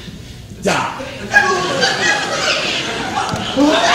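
A man cries out loudly on a stage in an echoing hall.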